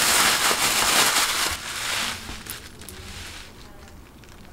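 Plastic wrapping crinkles loudly.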